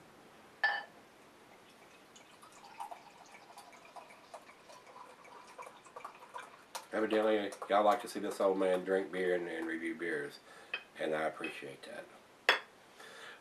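Beer pours from a bottle into a glass, fizzing and gurgling.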